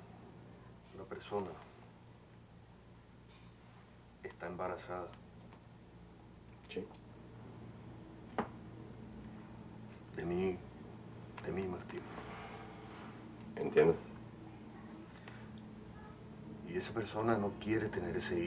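A young man speaks wearily in short, halting phrases close by.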